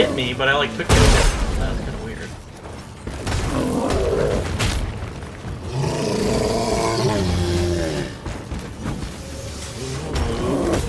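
A sword clashes and slashes against creatures in a fight.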